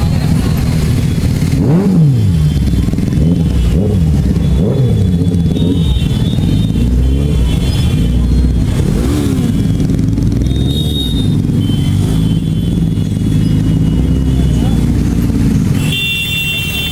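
Motorcycle engines idle and rev close by in dense traffic.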